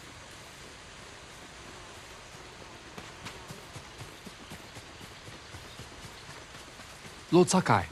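Footsteps rustle quickly through tall grass.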